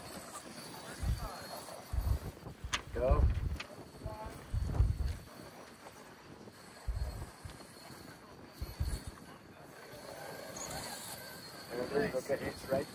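Rubber tyres scrape and bump on rock.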